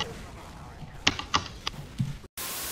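Sharp gunshots crack in quick succession.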